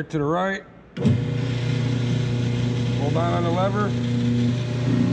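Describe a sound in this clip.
A paper drill motor hums steadily.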